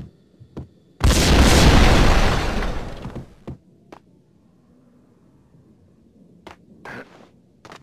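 A shotgun fires with a loud blast that rumbles and echoes.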